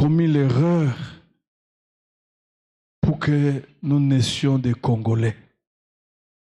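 A middle-aged man speaks with animation into a microphone, heard through a loudspeaker.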